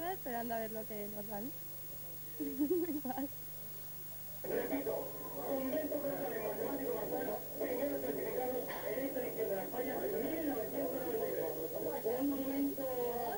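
A young woman speaks cheerfully into a microphone, close by.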